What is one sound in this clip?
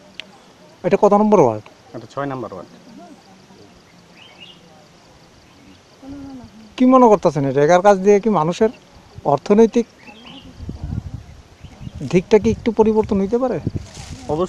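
A young man speaks close to a microphone, calmly, in short phrases with pauses.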